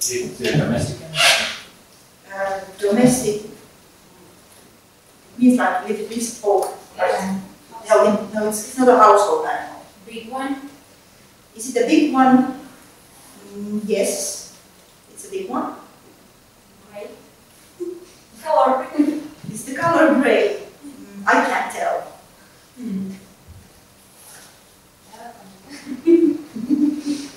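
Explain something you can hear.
A woman speaks calmly and clearly, with short pauses.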